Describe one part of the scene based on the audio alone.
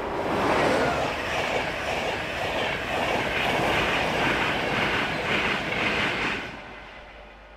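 Train wheels clatter rhythmically over the rail joints.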